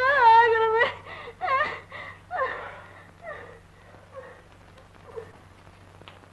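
A woman wails and sobs loudly.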